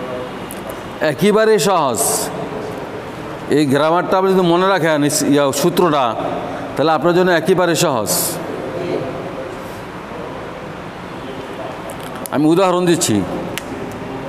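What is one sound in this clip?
A man speaks in a tiled, echoing room.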